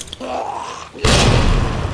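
A sudden loud crash bursts out and roars on.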